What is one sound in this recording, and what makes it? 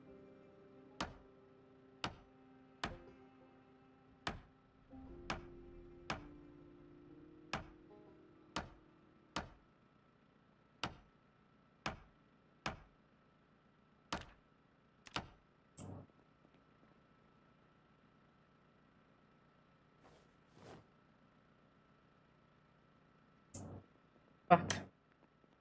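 Short interface clicks tick at a steady pace as menus open and close.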